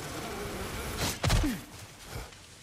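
A spear whooshes through the air in a swing.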